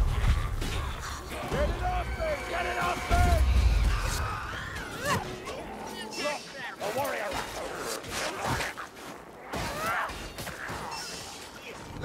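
Creatures screech and snarl.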